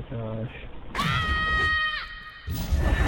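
A magic spell rings out with a bright, shimmering chime.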